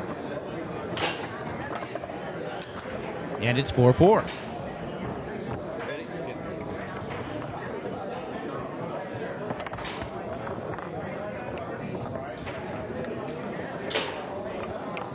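A foosball ball cracks sharply off the player figures.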